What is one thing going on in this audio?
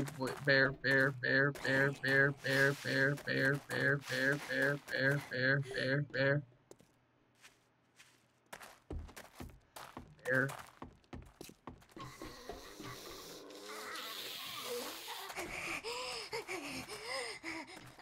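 Footsteps crunch over loose debris.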